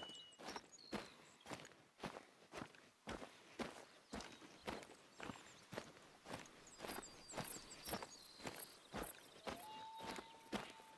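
Footsteps crunch steadily through grass and undergrowth.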